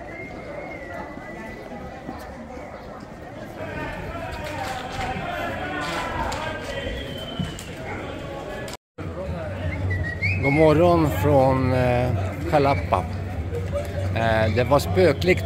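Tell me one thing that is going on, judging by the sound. A crowd of young men and women talk among themselves as they march outdoors.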